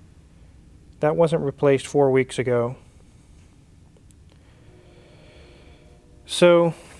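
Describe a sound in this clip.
A man speaks calmly and close to a clip-on microphone.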